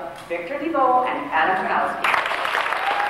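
A woman reads out loudly through a microphone in a large hall.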